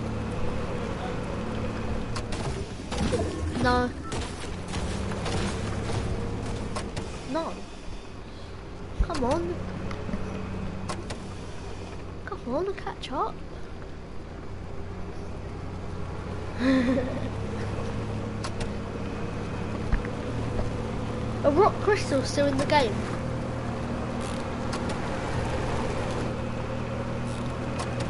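A cart's engine hums steadily as it drives over grass.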